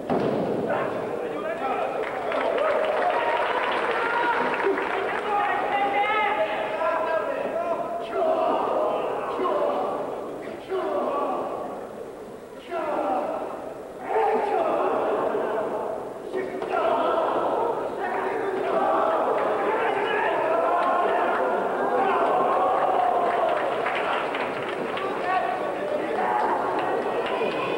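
A large crowd shouts and cheers in an echoing arena.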